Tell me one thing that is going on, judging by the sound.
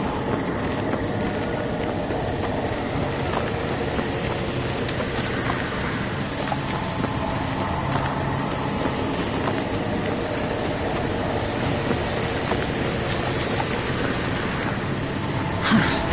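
Heavy armoured footsteps thud on the ground at a run.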